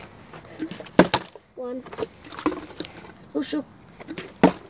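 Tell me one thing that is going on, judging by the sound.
A plastic bottle thumps down onto a hard step.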